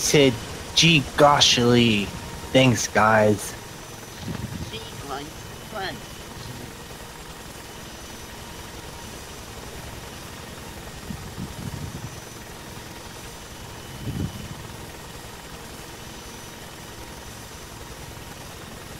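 A helicopter's rotor thumps and its engine drones steadily.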